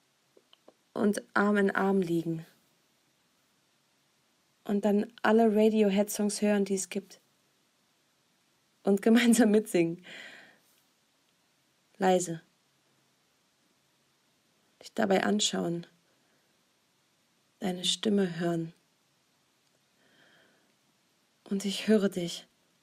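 A young woman speaks with animation in short bursts, close to a microphone.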